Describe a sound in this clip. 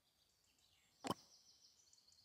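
A game button clicks once.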